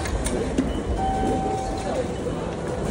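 A ticket gate beeps as a card is tapped.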